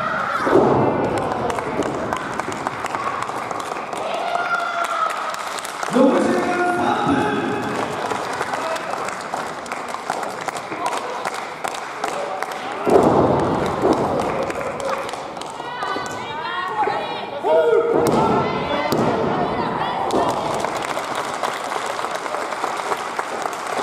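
Young women shout and grunt loudly in a large echoing hall.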